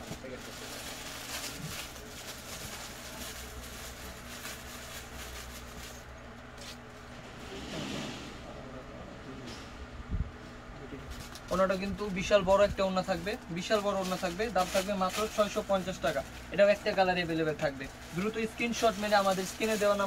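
Fabric rustles as it is unfolded and spread out.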